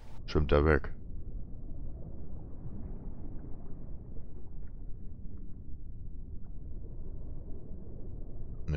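A low, muffled underwater rumble goes on steadily.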